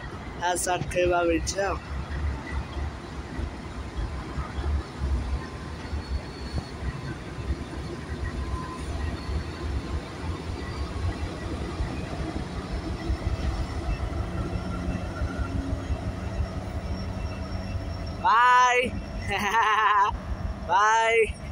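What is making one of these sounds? Diesel locomotives rumble steadily as they pass close by.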